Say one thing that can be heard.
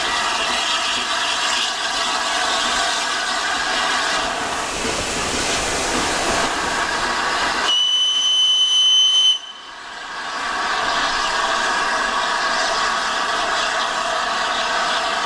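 A steam locomotive chuffs and rumbles past, pulling carriages along the track.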